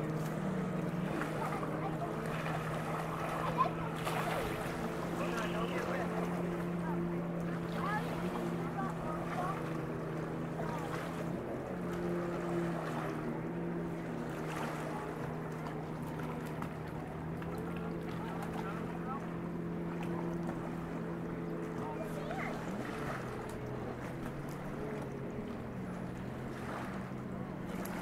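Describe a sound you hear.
A boat engine hums steadily nearby.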